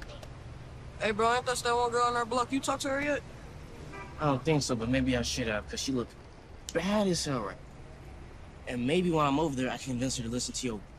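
A teenage boy talks with animation close by.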